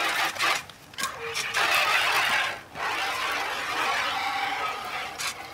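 Water pours from a bowl and splashes into a bucket.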